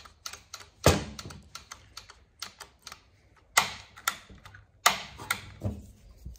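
Plastic parts of a chainsaw click and knock as hands handle it.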